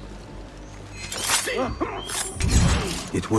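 A blade swishes through the air and strikes.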